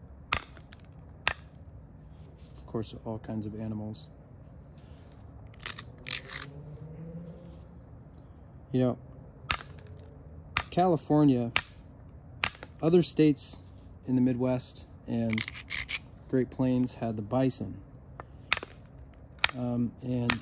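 Stone flakes snap off with sharp clicks under an antler tool.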